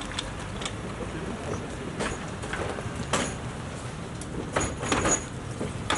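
A stretcher clatters as it is loaded into an ambulance.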